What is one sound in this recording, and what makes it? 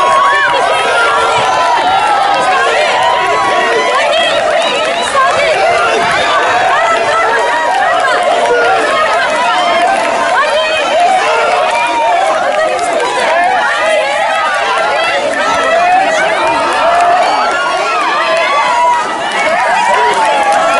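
A crowd of men and women cheers and shouts outdoors.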